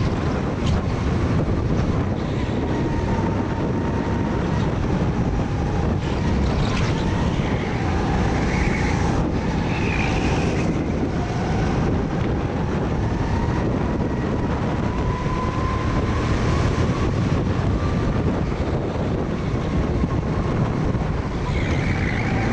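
Nearby kart engines whine as they race ahead.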